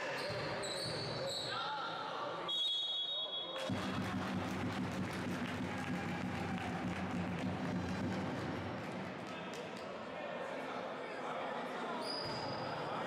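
Sneakers squeak sharply on a hard court in a large echoing hall.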